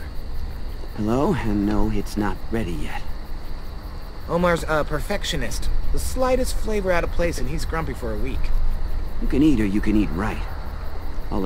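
A young man speaks casually, close by.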